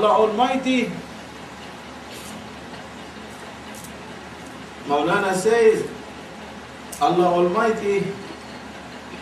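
An elderly man speaks calmly in short phrases, close to a microphone.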